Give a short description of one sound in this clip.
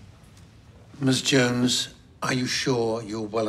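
An elderly man speaks firmly and clearly nearby.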